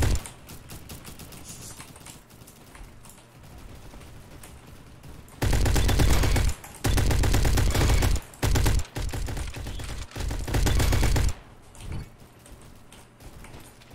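Keyboard keys click and clack under quick fingers.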